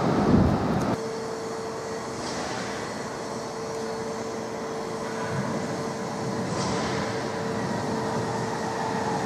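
A train approaches slowly from a distance with a low hum.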